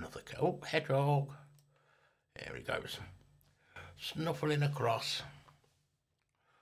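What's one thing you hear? A middle-aged man talks calmly into a microphone, close by.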